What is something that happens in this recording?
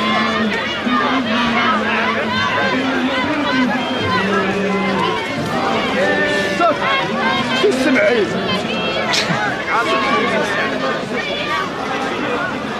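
A large crowd of men shouts and chants together outdoors.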